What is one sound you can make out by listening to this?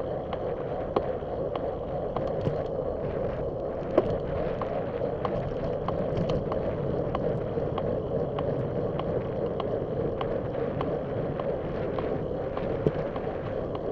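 The car rattles over bumps in the road.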